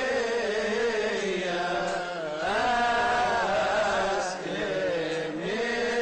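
A choir of men chants together.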